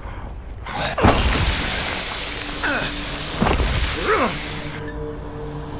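A monster growls and shrieks close by.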